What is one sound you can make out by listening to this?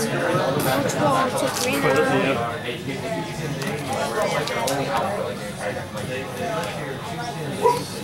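Playing cards slide and tap softly on a table mat.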